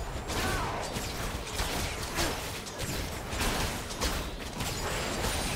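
Weapons clash in quick hits.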